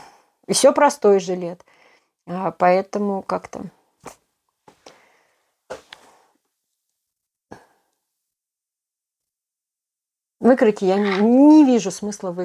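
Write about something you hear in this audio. A middle-aged woman speaks calmly and close by, with pauses.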